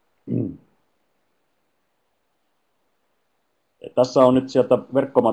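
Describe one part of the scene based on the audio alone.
A middle-aged man speaks calmly through a headset microphone over an online call.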